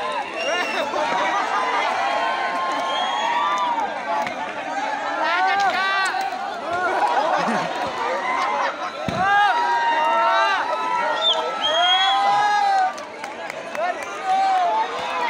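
A large crowd of men shouts and cheers close by.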